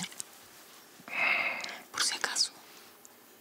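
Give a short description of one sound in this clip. A man answers quietly, close by.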